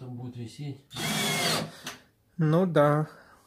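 A cordless drill whirs as it drives in a screw.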